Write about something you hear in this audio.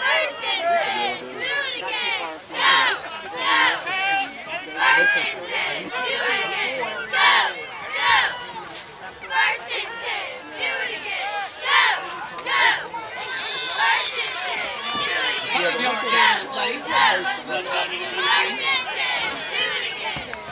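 Young men shout from close by.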